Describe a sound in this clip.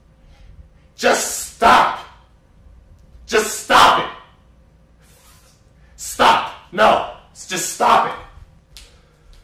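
A young man shouts loudly in short, forceful bursts close by.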